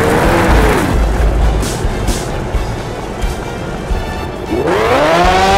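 A motorcycle crashes and scrapes across gravel.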